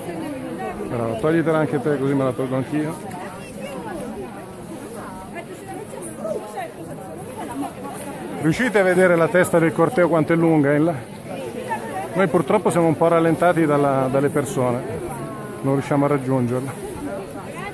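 A large crowd of men and women chants loudly in unison outdoors.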